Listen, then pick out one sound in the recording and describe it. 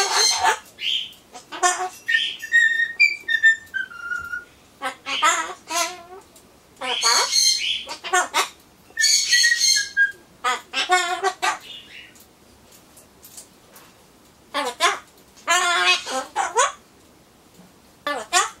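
A parrot squawks and screeches loudly close by.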